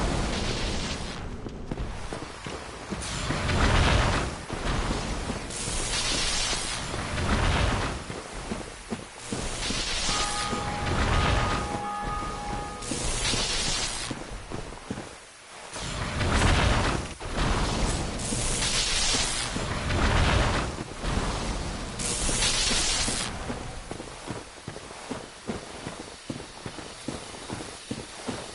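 Armoured footsteps thud on the ground.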